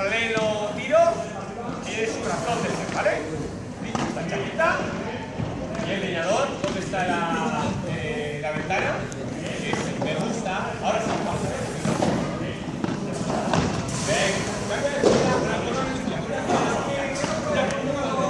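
A paddle strikes a ball with sharp pops, echoing in a large hall.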